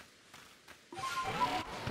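A bright magical chime bursts out with a shimmering sparkle.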